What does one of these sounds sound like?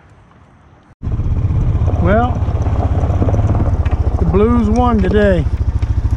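A quad bike engine runs loudly and rumbles as it drives.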